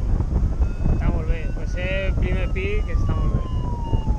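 A man speaks briefly and loudly over the wind.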